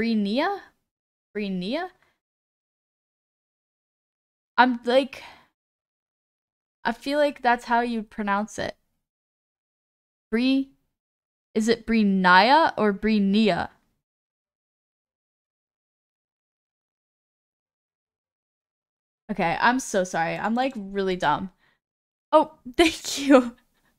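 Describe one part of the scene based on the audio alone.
A young woman talks with animation close to a microphone, in bursts with pauses.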